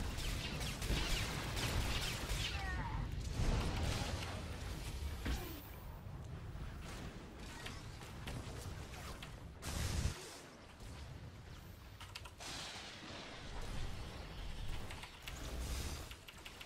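Electric bolts crackle and zap in bursts.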